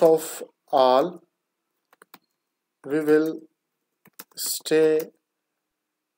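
A man speaks slowly and clearly into a close microphone, dictating in short phrases.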